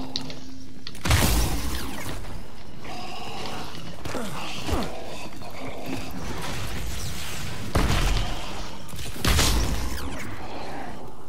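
A harsh electronic crackle bursts out loudly a few times.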